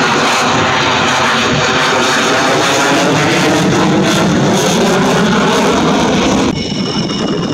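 A twin-engine jet fighter roars past overhead.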